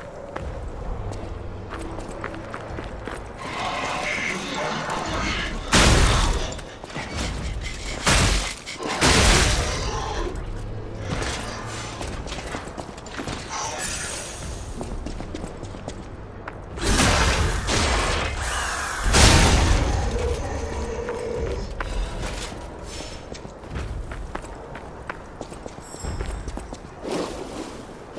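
Footsteps crunch over stony ground.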